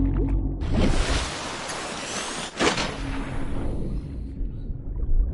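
Water splashes loudly as a diver plunges in, then bubbles fizz away.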